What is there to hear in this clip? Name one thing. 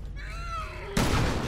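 A gunshot bangs loudly.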